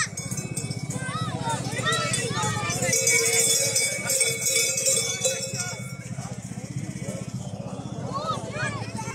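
A small street band plays fast, rhythmic music.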